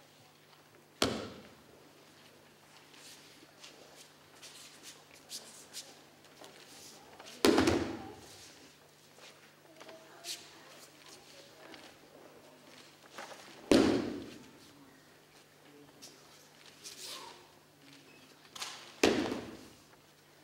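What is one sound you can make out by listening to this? Bodies thud heavily onto a mat as people are thrown down.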